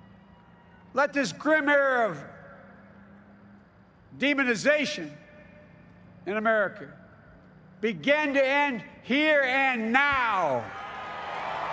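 An elderly man speaks slowly and forcefully into a microphone, his voice echoing over a loudspeaker.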